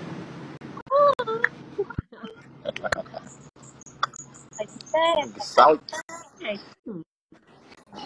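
A young woman laughs close to a phone microphone.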